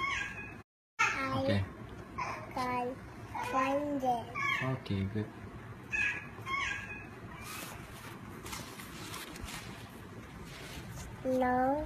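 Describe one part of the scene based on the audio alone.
A young child reads aloud close by.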